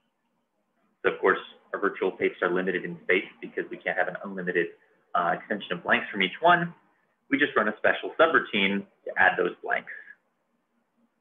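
A man speaks calmly and explains, close to a microphone.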